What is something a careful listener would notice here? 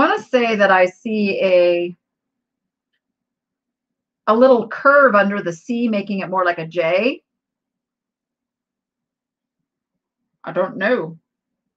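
A middle-aged woman speaks calmly and close to the microphone, heard over an online call, with pauses between phrases.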